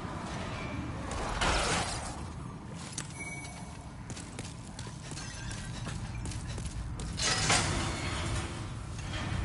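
Heavy footsteps thud on a stone floor.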